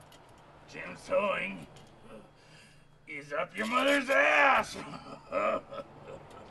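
A middle-aged man speaks in a strained, drawn-out voice close by.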